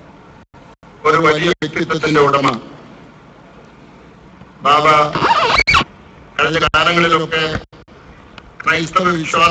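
A middle-aged man speaks slowly and solemnly into a microphone, with pauses.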